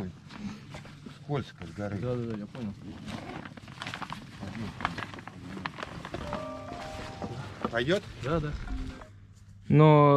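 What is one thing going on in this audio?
Men talk to each other nearby.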